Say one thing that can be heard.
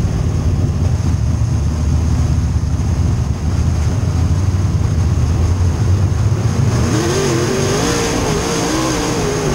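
The car body rattles and shakes over a bumpy dirt track.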